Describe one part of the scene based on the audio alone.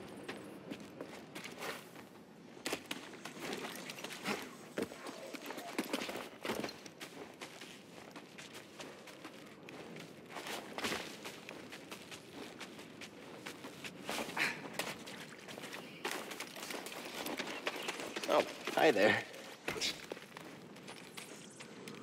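Footsteps run over grass.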